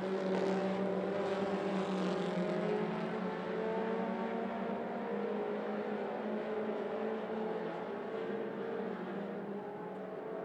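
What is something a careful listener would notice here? A race car engine roars loudly as the car speeds past.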